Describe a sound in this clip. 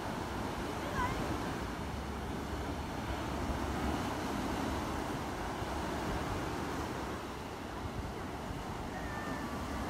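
Waves crash and wash up onto a sandy shore outdoors.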